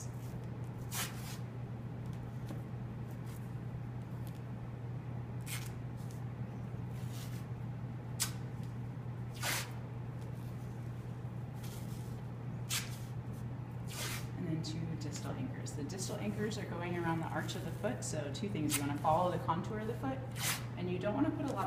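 Adhesive tape rips as it is pulled off the roll.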